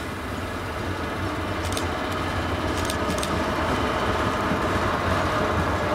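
Train wheels clatter and squeal over the rails.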